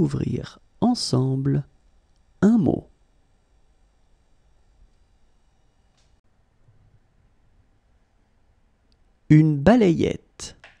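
A man speaks calmly and clearly through a microphone.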